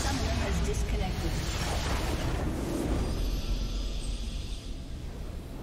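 Magic spells crash and whoosh loudly in a battle.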